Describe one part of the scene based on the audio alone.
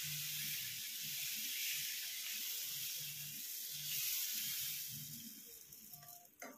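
Batter sizzles on a hot pan.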